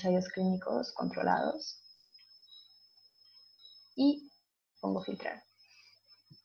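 A young woman speaks calmly and steadily, close to a microphone, with pauses.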